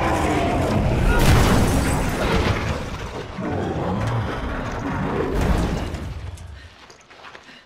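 A huge beast roars and growls loudly.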